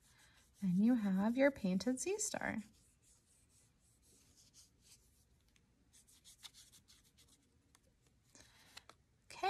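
A paintbrush softly brushes over paper.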